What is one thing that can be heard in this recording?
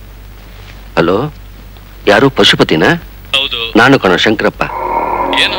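A man speaks urgently into a telephone.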